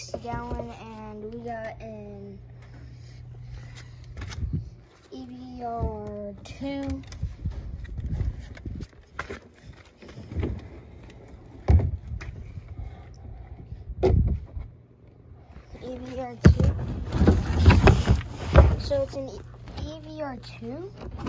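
A plastic wheelie bin bumps and knocks as it is handled.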